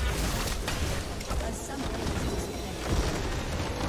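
A large crystal structure shatters with a booming blast.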